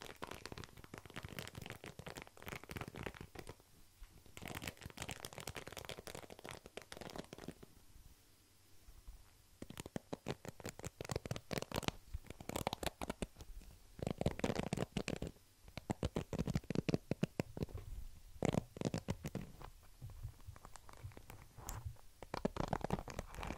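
Fingers flick the bristles of a plastic hairbrush close to a microphone.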